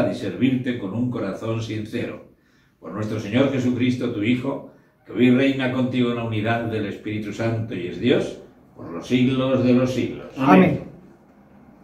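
An elderly man speaks slowly and solemnly through a microphone in a reverberant room.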